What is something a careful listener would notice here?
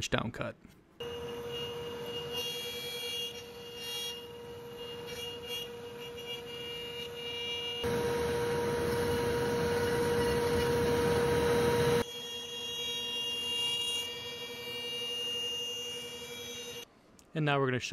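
A router whines steadily as it carves wood.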